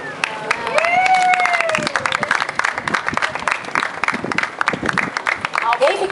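A crowd of children and adults claps and cheers.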